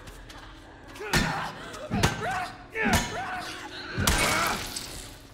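Heavy blows thud as a man strikes with a metal pipe.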